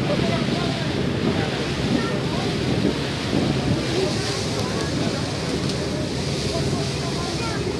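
Water churns and splashes steadily in a boat's wake.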